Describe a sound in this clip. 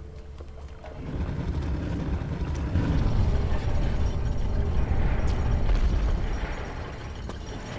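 A heavy stone block scrapes and grinds across a stone floor.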